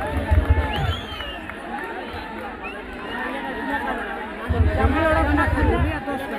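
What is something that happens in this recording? A large crowd chatters and cheers outdoors in the distance.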